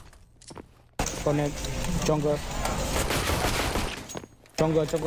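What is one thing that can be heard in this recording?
Suppressed gunshots fire in quick bursts.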